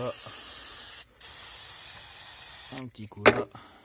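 An aerosol can sprays with a steady hiss.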